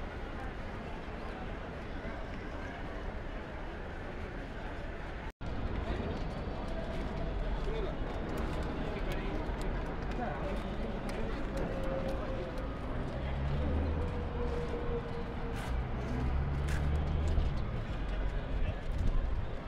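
A busy city hums in the distance, outdoors.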